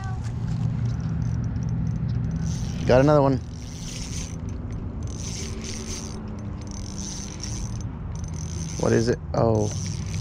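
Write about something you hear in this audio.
A fishing reel whirs as its handle is cranked.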